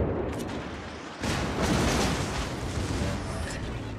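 A warship's big guns fire with deep, loud booms.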